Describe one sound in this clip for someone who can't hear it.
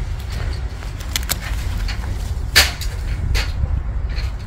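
Pruning shears snip through plant stems with sharp clicks.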